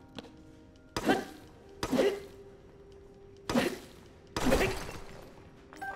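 A club strikes a hard object with loud thuds.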